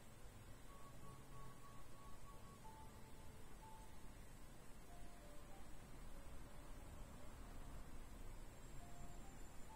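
A computer fan hums steadily.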